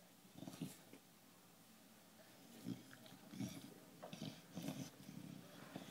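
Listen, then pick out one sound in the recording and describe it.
A dog snorts and breathes heavily close by.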